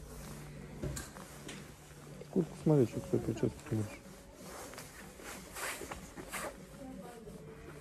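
A padded jacket rustles as it is pulled and moved.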